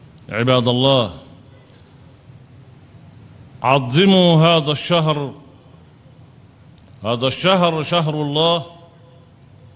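An elderly man preaches into a microphone in short, drawn-out chanted phrases with pauses between them.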